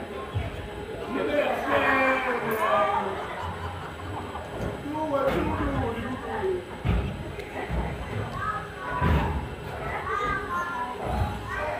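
Young people shout and cheer outdoors at a distance.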